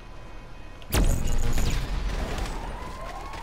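A body thuds heavily onto hard pavement.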